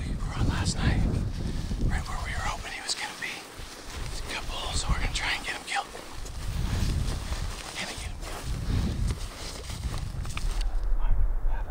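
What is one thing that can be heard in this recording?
Wind blows hard across open ground.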